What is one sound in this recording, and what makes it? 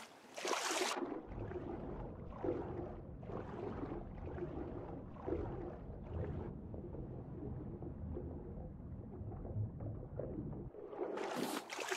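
Water sounds turn deep and muffled underwater.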